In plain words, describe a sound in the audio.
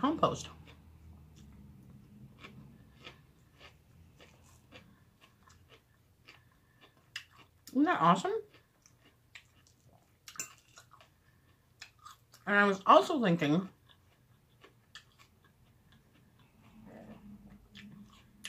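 A woman chews and smacks her lips softly.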